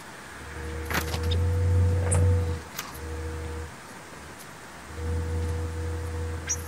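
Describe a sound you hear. Small birds chirp briefly now and then.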